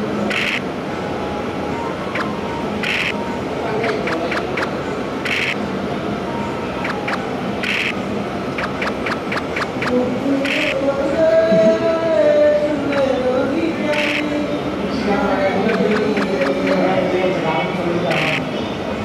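Dice rattle briefly in a quick roll, again and again.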